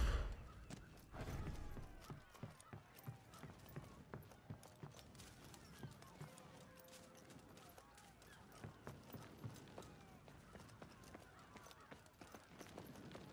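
Heavy footsteps thud as an armoured warrior runs.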